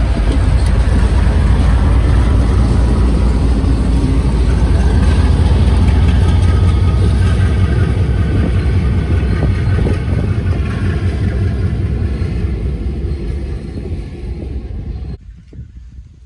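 A passenger train rumbles past close by, wheels clattering on the rails.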